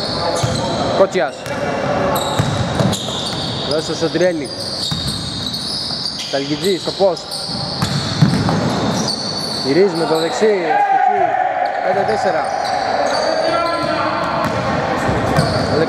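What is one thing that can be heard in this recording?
A basketball bounces with hollow thuds.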